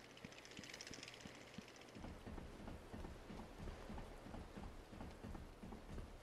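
Footsteps clank softly on a metal walkway.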